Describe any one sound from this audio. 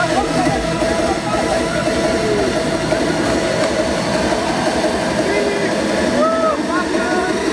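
Young men shout and whoop nearby.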